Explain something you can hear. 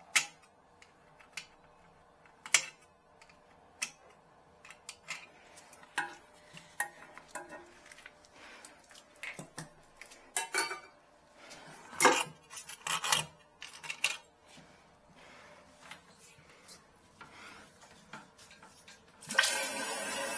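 Plastic parts click and knock inside a toilet tank.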